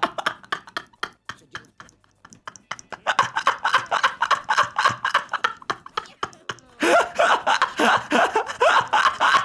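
A man laughs and talks loudly into a close microphone.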